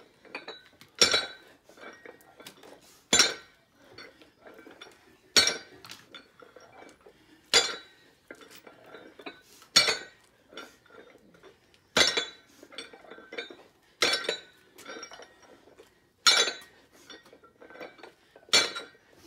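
A weight plate knocks on the ground at a steady pace.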